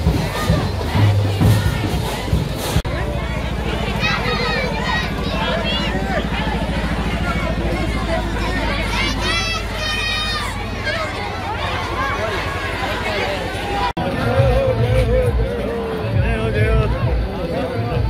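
A festive crowd chatters and cheers outdoors.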